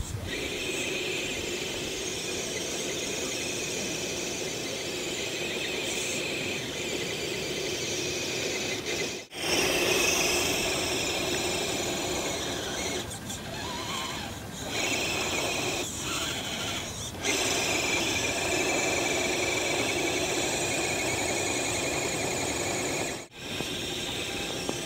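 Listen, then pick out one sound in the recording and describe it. A small vehicle's engine whines as it churns through snow.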